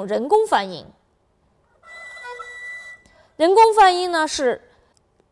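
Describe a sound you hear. A bowed two-string fiddle plays short sliding phrases, with a thin, high, steady note between them.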